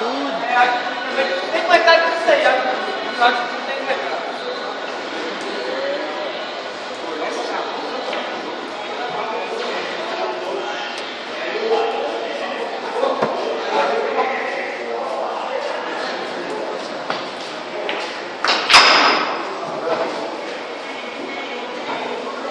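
Men talk casually nearby.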